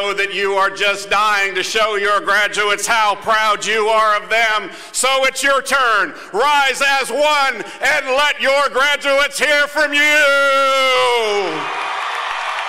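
A man sings loudly through a microphone and loudspeakers outdoors, ending on a long high note.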